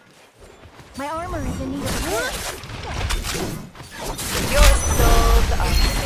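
Blades swish and clash in a fight.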